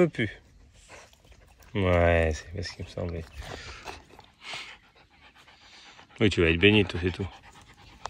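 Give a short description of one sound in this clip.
A puppy laps water from a bowl.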